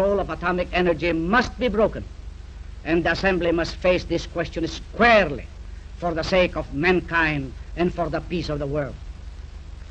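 A man speaks calmly and formally into a microphone.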